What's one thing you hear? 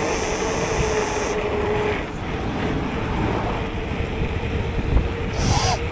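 A car drives past in the opposite direction.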